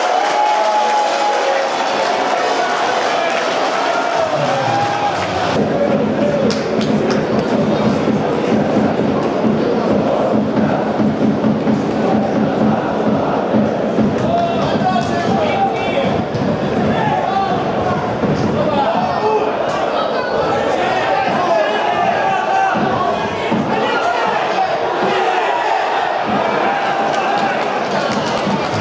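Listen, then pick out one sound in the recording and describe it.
A large crowd of fans chants and sings loudly in an open stadium.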